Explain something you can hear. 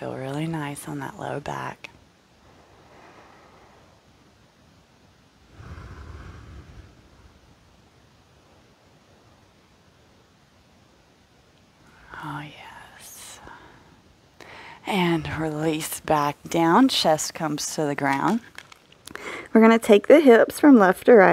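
A young woman speaks calmly, giving instructions through a close microphone.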